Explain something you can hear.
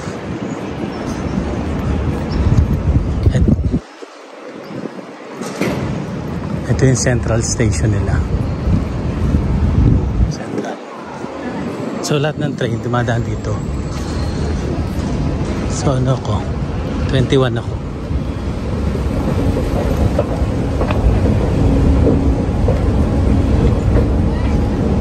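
Footsteps and a crowd murmur echo through a large, busy station hall.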